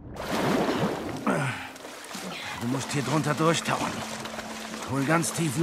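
Water splashes as a person swims with strong strokes.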